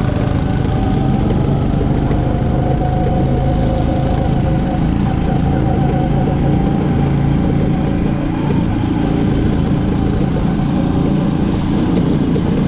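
Other go-kart engines whine nearby.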